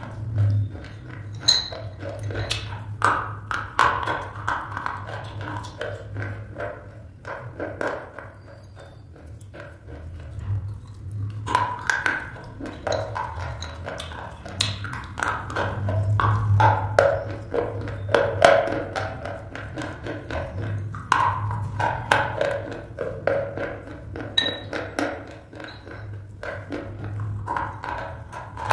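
A woman sucks and smacks her lips loudly up close.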